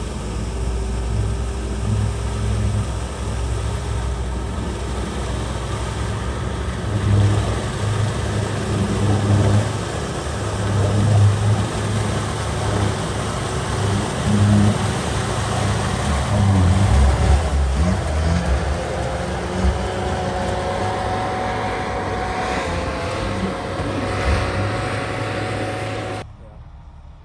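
A heavy vehicle's engine rumbles and growls up close.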